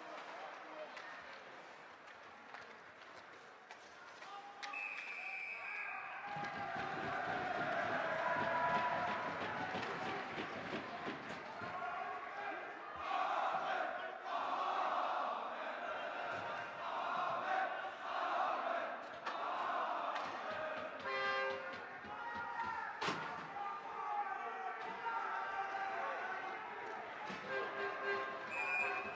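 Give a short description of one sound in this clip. Skates scrape and glide on ice.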